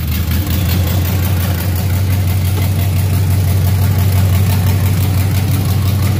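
A car engine idles loudly and steadily with a deep rumble.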